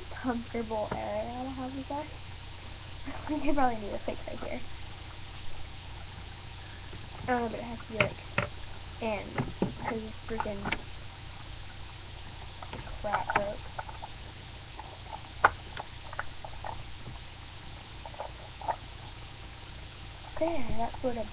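A young woman talks casually, close to a phone's microphone, in short bursts.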